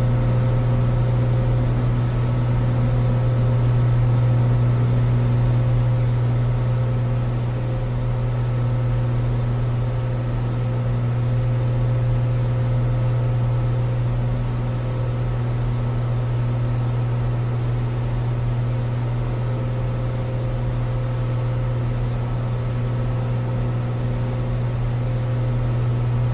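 A small propeller plane's engine drones steadily at full power.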